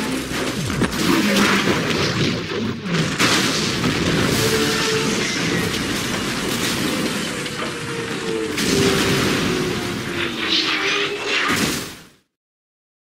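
Debris rumbles and crashes.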